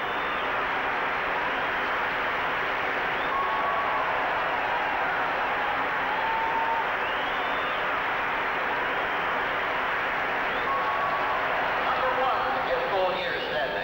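Spectators whistle shrilly among the crowd.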